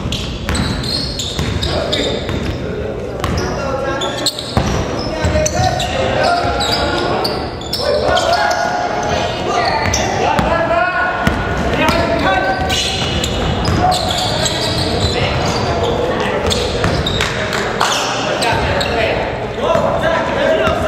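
Shoes squeak on a hard floor in a large echoing hall.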